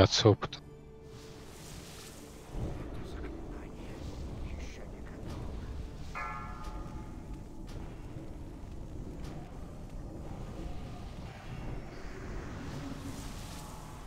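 Spell effects and combat sounds from a fantasy video game play.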